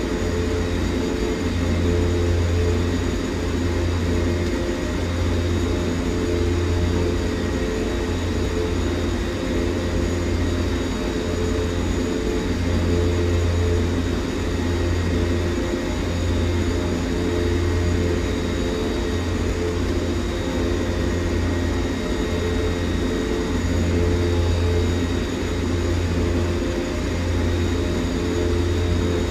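Aircraft engines drone steadily with a low throbbing hum.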